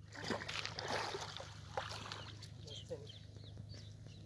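Something splashes into water.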